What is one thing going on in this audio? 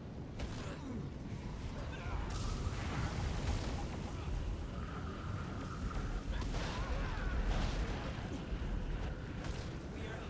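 Fiery spells whoosh and crackle in bursts.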